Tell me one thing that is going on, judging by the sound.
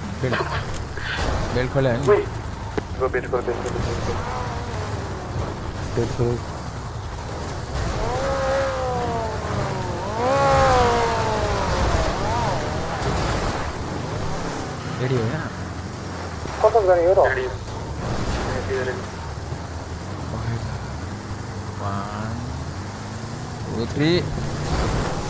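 An engine revs and roars as a truck climbs.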